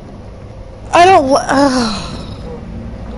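A young man cries out loudly in a high voice, close to a microphone.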